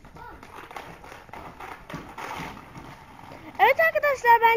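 Inline skate wheels roll and scrape on rough concrete.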